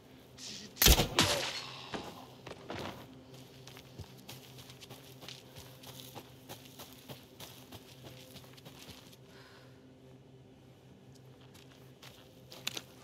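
Footsteps tread slowly on a dirt path.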